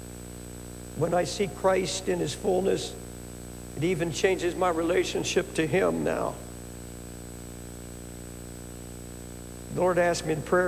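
An elderly man speaks slowly and deliberately through a microphone in a large hall, pausing between phrases.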